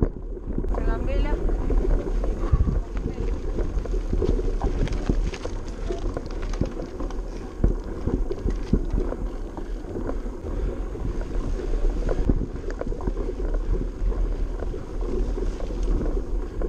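Wind rumbles steadily across a microphone outdoors.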